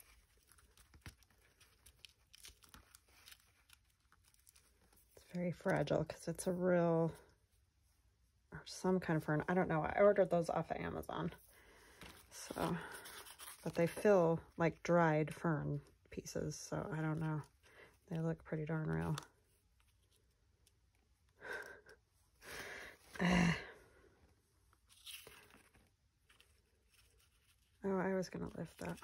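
Paper rustles and crinkles as hands press and handle it.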